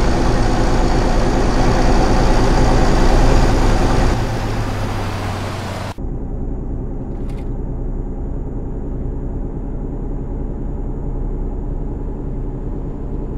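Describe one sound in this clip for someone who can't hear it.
Tyres roar on a road.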